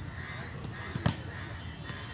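A ball thuds as a player hits it.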